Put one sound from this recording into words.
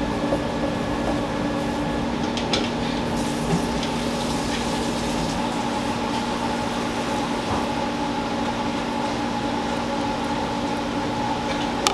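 A knife taps on a wooden board while slicing fish.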